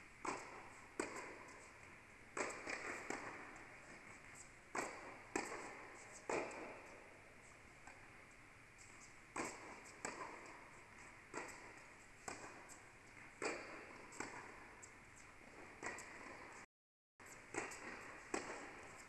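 A player's shoes squeak on the court.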